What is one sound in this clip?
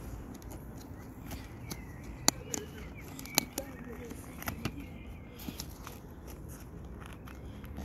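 Buckles and straps on an inline skate click and rustle as they are fastened.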